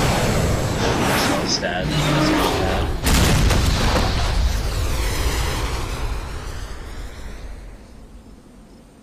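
A large machine explodes with a loud roaring blast that slowly fades.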